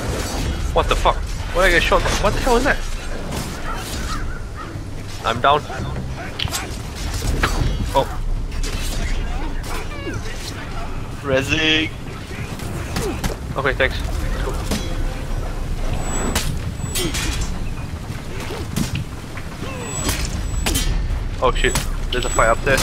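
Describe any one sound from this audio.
Swords and axes clash and clang in a melee.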